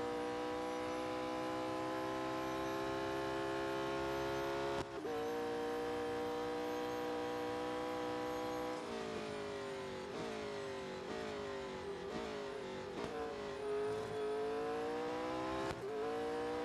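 A racing car engine roars at high revs, shifting gears and revving up and down as it slows and speeds up again.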